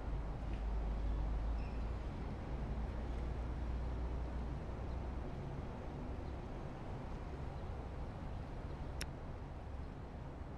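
A jet airliner's engines rumble low and steady as it taxis.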